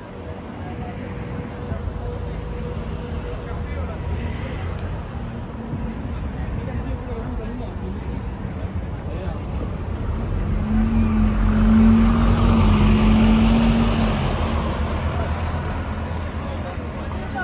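Outdoors, a steady low rumble of wind buffets the microphone.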